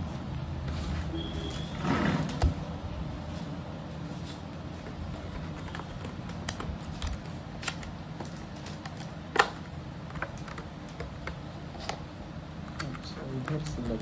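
Plastic packaging crinkles and clicks in hands.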